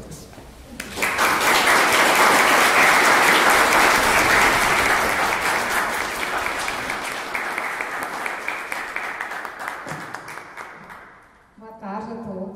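An audience applauds loudly and slowly dies down.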